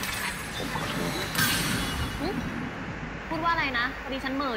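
A magic blast whooshes and crackles.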